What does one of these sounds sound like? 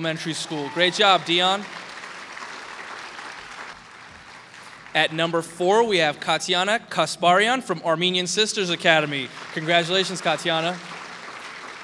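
A man announces through a microphone and loudspeakers in a large hall.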